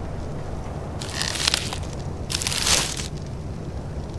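Straw-like thatch rustles twice with a sharp whoosh.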